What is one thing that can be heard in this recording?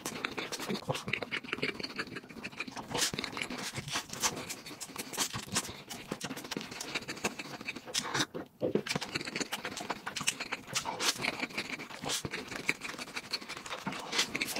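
A young man bites into a crispy crust with a sharp crunch.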